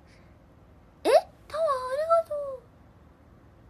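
A young woman speaks close to a microphone in a high, animated voice.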